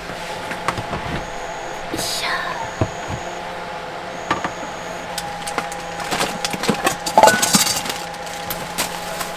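Objects clatter as they are rummaged through in a box.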